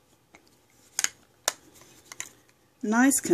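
A small jar clicks as it is handled.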